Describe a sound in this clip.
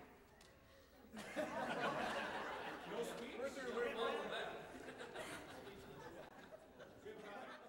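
Women laugh nearby.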